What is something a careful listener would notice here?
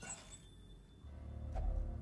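A torch flares up with a whoosh.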